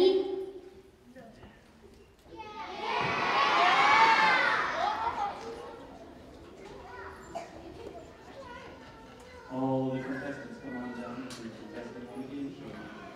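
Young children chatter and call out softly.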